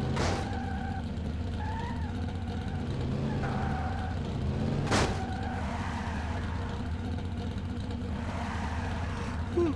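Tyres skid and screech on pavement.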